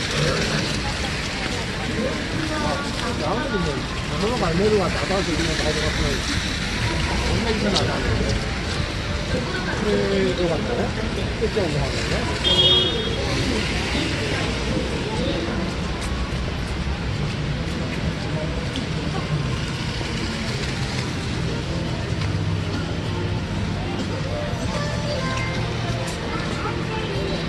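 A crowd of people chatters nearby in the open street.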